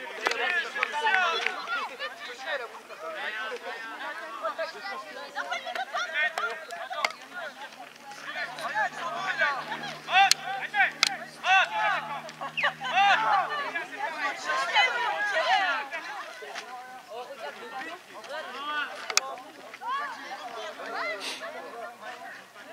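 Several men and women talk and call out close by, outdoors.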